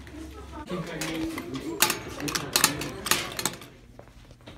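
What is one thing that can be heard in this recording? A combination lock clicks as its dial is turned.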